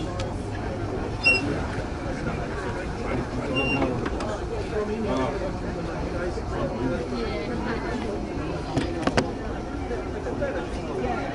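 A subway train rumbles steadily along the tracks through a tunnel.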